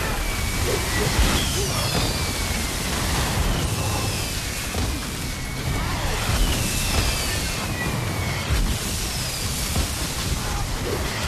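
Hits land on monsters with rapid thuds and impacts.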